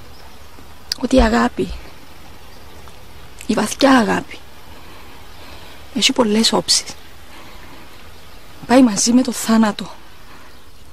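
A woman speaks close by in short, emotional phrases with pauses between them.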